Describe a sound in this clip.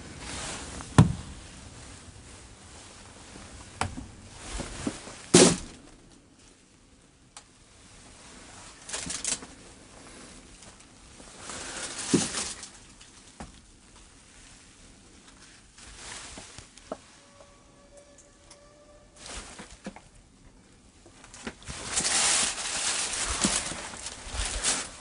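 Footsteps scuff on a hard floor.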